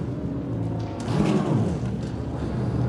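A low whoosh sweeps past.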